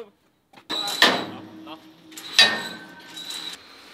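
Steel bars clank against each other.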